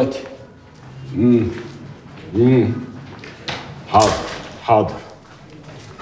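An elderly man talks on a phone.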